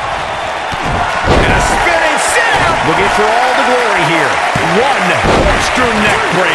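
Bodies slam down onto a wrestling ring with heavy thuds.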